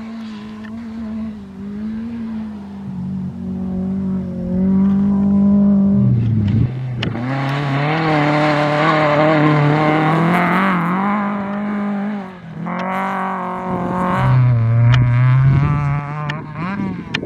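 A rally car engine revs hard and roars past, shifting gears.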